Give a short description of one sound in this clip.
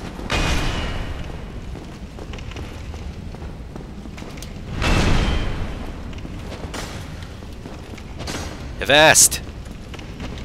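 Metal weapons clash and clank.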